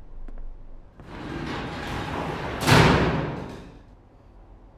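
A metal roller door rattles as it is pulled up.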